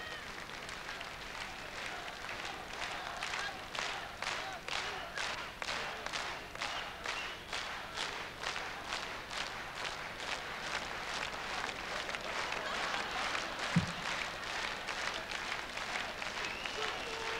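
A large crowd claps in rhythm in a big echoing hall.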